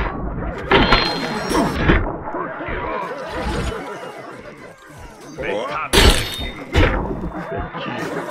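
A blade slashes and thuds into flesh with wet splatters.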